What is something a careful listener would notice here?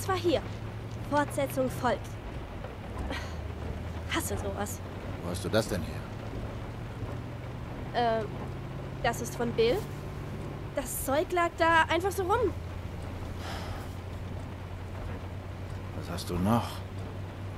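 A young woman talks calmly into a nearby microphone.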